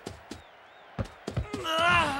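A ball is kicked with a hard thud.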